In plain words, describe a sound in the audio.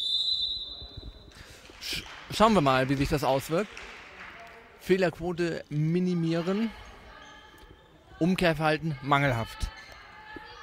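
Players' shoes patter and squeak on a hard floor in an echoing hall.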